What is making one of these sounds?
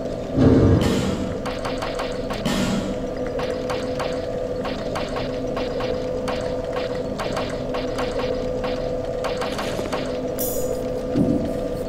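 Game menu clicks tick in quick succession.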